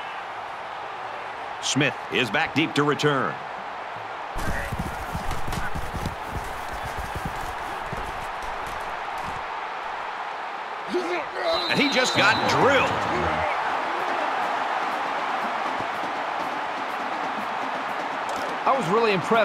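A large stadium crowd roars steadily.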